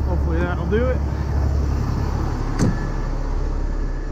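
A heavy vehicle door clunks open.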